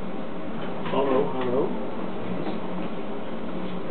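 A young man speaks toward the listener.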